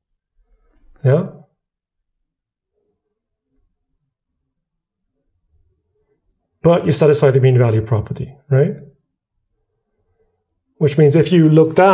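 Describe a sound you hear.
A man speaks calmly and clearly into a close microphone, pausing between phrases.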